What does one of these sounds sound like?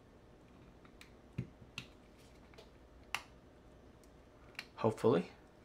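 Small plastic clicks and taps come as fingers handle a tiny plastic case.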